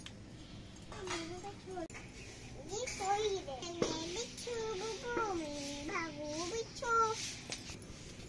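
A young child talks in a high, sing-song voice nearby.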